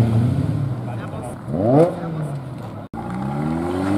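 A car engine revs loudly and pulls away.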